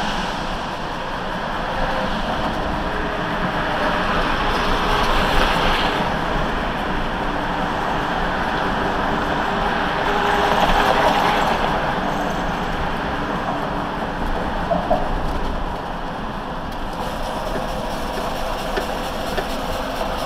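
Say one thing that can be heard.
Tyres roll and rumble over the road.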